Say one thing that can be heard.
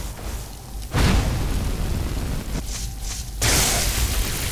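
Fire spells roar and whoosh.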